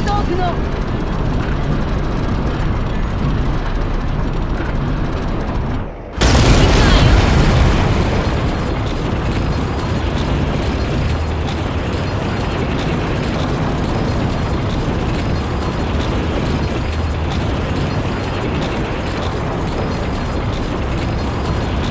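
A tank engine rumbles steadily as the tank drives.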